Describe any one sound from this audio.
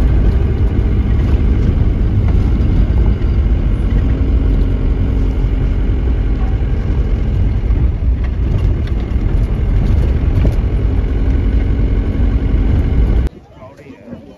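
A car engine rumbles steadily while driving along a rough road.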